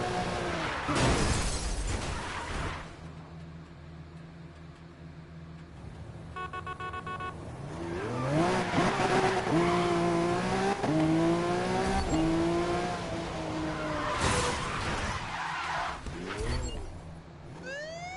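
Tyres screech as a car drifts around bends.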